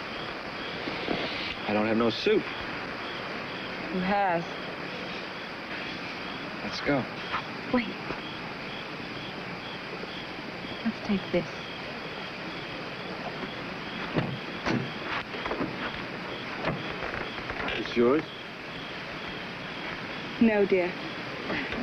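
A young man talks in a low voice, close by.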